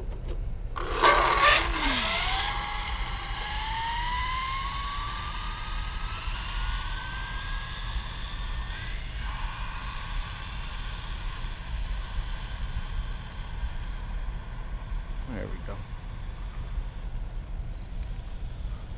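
Skateboard wheels roll over rough pavement with a whirring hum that rises in pitch as it speeds up.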